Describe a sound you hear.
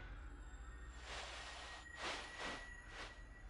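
Hands rummage through the contents of a wooden chest.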